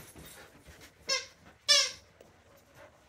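A squeaky toy squeaks a few times.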